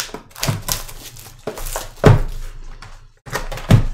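A cardboard box is opened.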